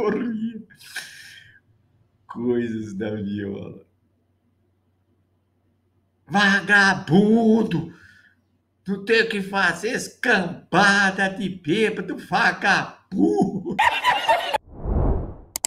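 An elderly man talks with animation close to a microphone.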